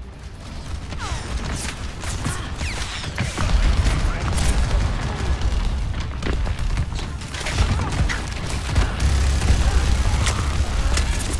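A sci-fi energy gun fires rapid zapping shots.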